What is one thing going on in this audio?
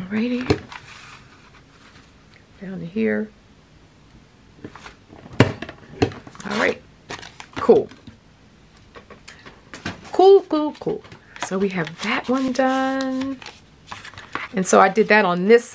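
Paper rustles and crinkles as it is handled and folded.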